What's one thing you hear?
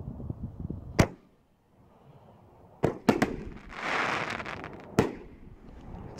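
A firework shell bursts with sharp loud bangs.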